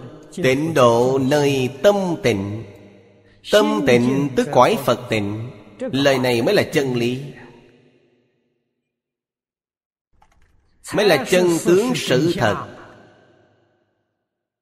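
An elderly man speaks calmly and clearly into a close microphone, in short phrases with pauses.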